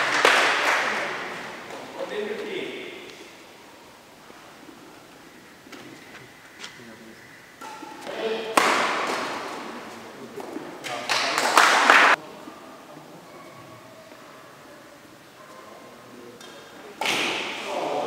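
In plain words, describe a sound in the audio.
Players' shoes squeak and thud on the court.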